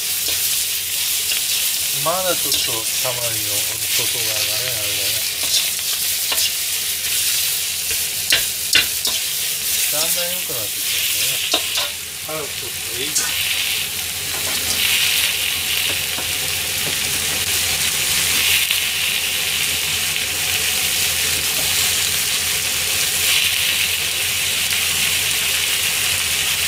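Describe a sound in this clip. Onions sizzle loudly in a hot wok.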